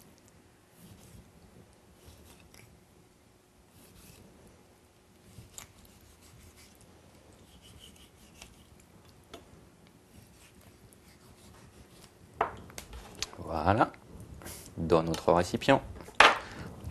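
A knife taps softly on a wooden board as fruit is sliced.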